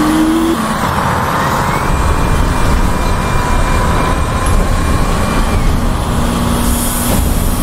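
A bus motor whines, its pitch rising and falling with speed.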